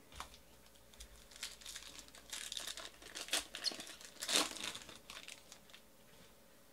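A foil card wrapper crinkles and tears open.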